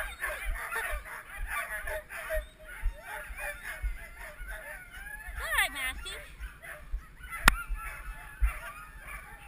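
Dogs whine and yelp nearby.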